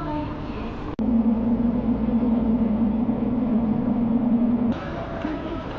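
A train hums loudly while riding.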